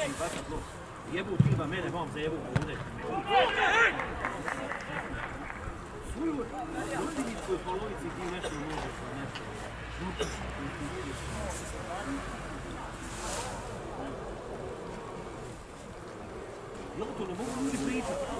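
Men shout to each other in the distance across an open outdoor field.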